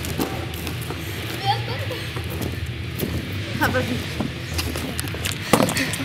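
Young women chatter and laugh nearby.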